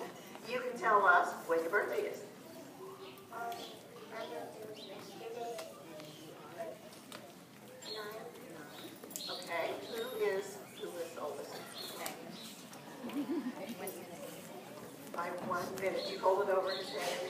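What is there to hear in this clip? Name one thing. Children murmur and chatter quietly in a crowd.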